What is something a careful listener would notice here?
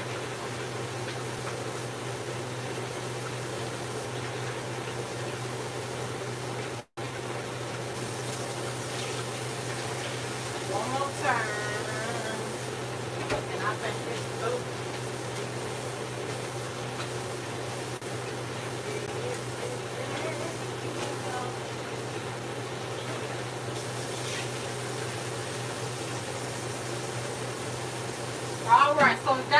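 Dishes clink and knock in a sink.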